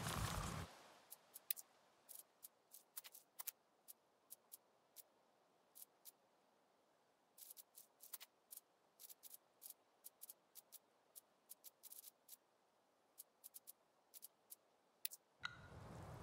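Soft menu clicks tick one after another.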